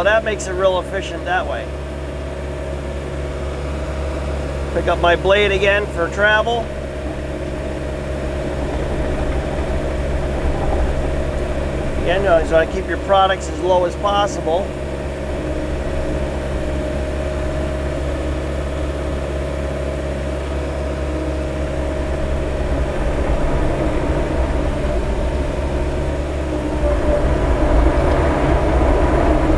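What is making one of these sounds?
A small excavator's diesel engine runs with a steady low rumble.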